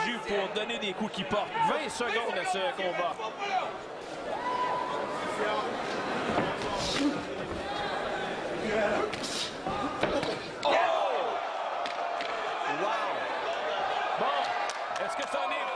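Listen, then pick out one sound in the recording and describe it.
A crowd cheers and shouts in a large arena.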